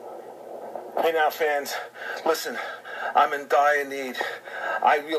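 A middle-aged man talks with animation through a phone speaker, close up.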